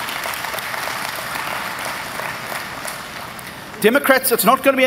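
A large crowd applauds and cheers in a big hall.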